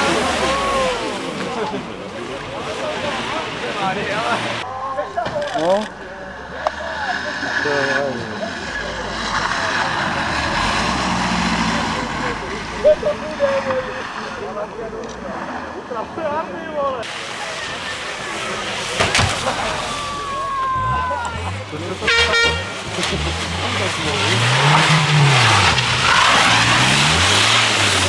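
Tyres crunch and hiss on snow and ice.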